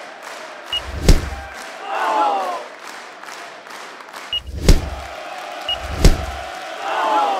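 Heavy punches thump with a whoosh.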